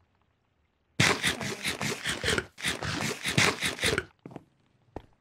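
Food is munched and crunched noisily.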